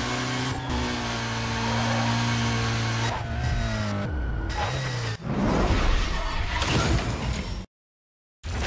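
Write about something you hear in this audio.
A racing car engine roars at high speed and shifts gears.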